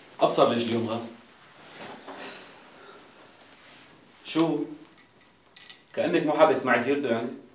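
A man speaks nearby in a firm voice.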